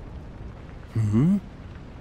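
A man speaks briefly in a deep voice.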